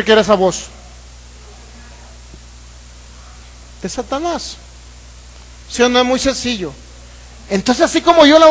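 A man speaks with animation into a microphone over loudspeakers, in bursts with pauses.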